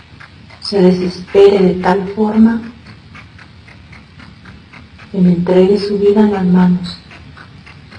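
A woman speaks slowly and calmly over an online call.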